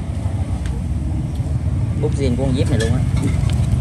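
A small cardboard box rustles as hands open it.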